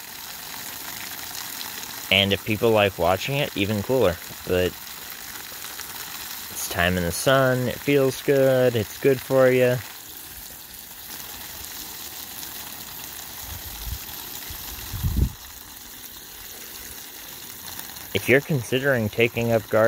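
Water from a garden hose splashes steadily onto leaves and soil.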